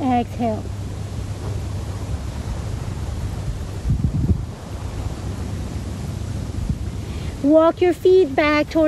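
Wind rumbles against the microphone outdoors.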